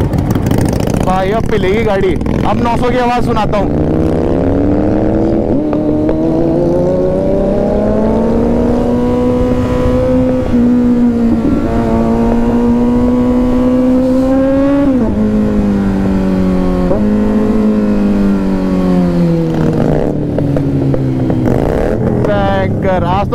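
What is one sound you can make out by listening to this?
A motorcycle engine hums steadily, rising in pitch as it speeds up and dropping with each gear change.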